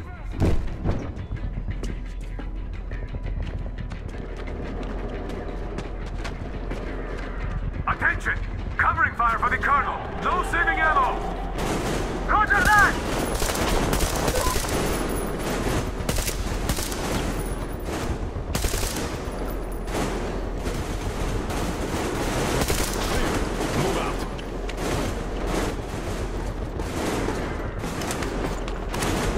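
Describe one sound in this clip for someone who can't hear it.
Footsteps crunch on gravel and debris.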